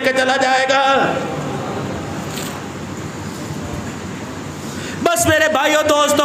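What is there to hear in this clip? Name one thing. A man chants in a drawn-out voice through a microphone.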